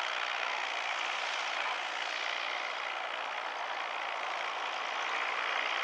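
A model plane's small engine buzzes steadily as it taxis.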